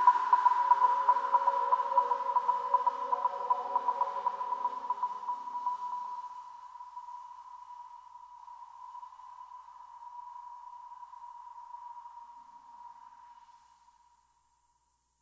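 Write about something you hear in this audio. Electronic dance music plays and slowly fades out.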